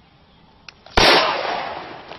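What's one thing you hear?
A handgun fires a single shot outdoors.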